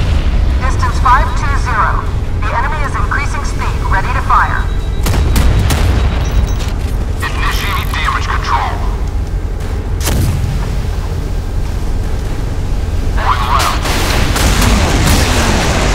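Large naval guns fire with heavy booms.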